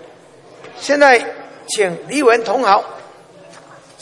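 An elderly man speaks into a microphone in a large hall, announcing.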